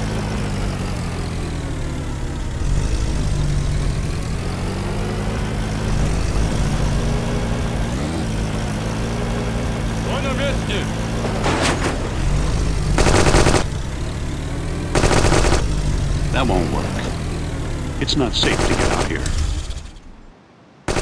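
A jeep engine rumbles steadily.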